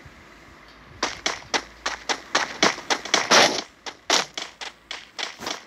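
Quick footsteps patter over the ground.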